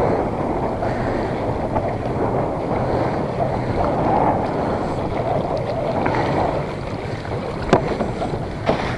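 A fishing net rustles as hands pull it in.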